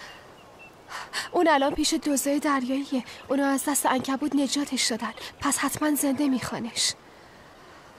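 A young woman speaks firmly, close by.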